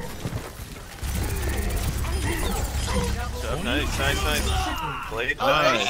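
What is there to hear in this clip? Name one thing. Rapid gunfire blasts in a video game.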